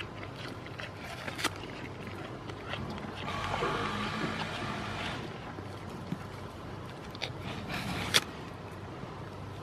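A goat crunches into an apple.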